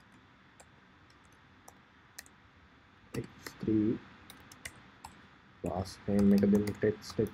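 A keyboard clicks as someone types.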